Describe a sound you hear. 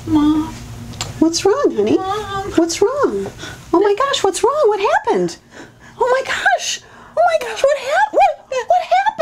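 A woman speaks with alarm and concern, close by.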